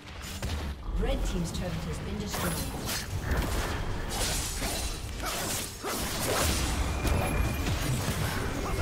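Magic blasts and weapon hits crash and zap in a busy fight.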